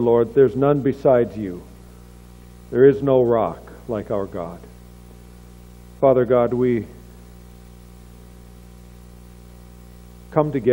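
An older man reads aloud calmly into a microphone, in short phrases with pauses.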